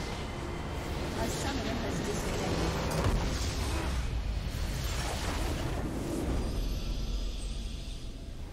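A game's base structure explodes with a loud crashing blast.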